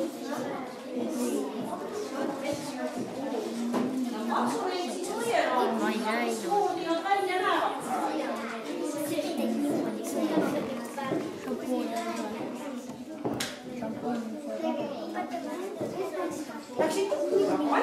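Young children talk and chatter nearby.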